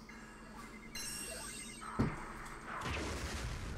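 A game creature fires a loud energy cannon blast.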